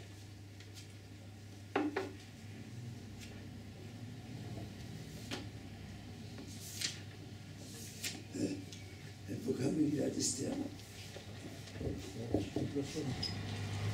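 Pages of a book rustle as they turn.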